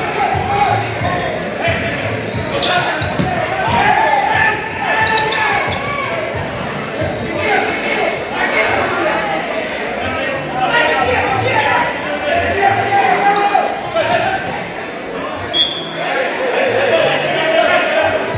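A crowd of spectators chatters and cheers throughout in a large echoing hall.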